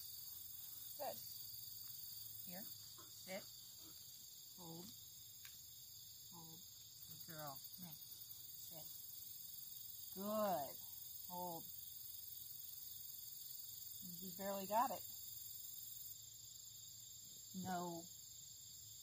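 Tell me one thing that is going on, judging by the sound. A woman speaks to a dog in short, calm, praising bursts, close by.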